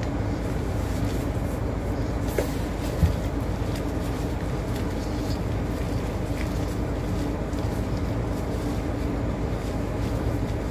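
Gloved hands rub and rustle softly against a foot.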